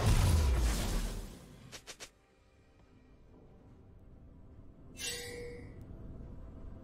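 Magic spell effects whoosh and chime in short bursts.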